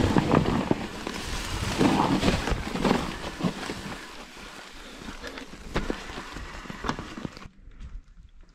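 Bicycle tyres crunch and rattle over dry leaves and stones.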